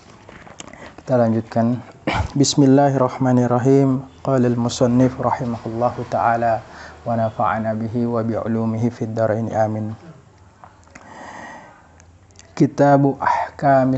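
A man recites in a steady, chanting voice through a microphone.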